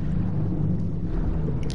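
Water sloshes and swirls as a swimmer moves through it.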